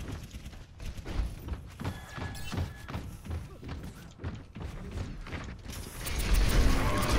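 Heavy mechanical footsteps thump at a steady pace.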